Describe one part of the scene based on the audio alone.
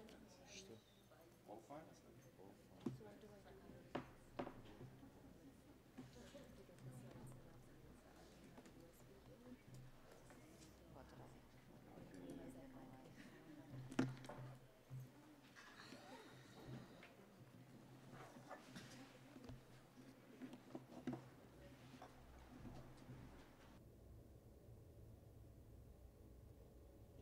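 Several people talk quietly in the background.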